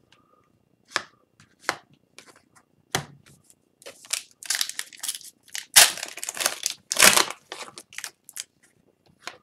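Trading cards rustle and flick as they are handled and shuffled.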